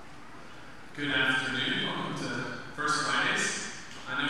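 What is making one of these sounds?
A young man speaks calmly into a microphone in an echoing hall.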